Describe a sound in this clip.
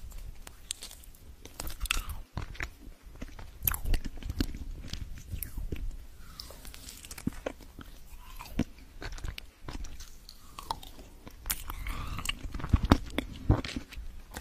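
A young woman chews and crunches food close to a microphone.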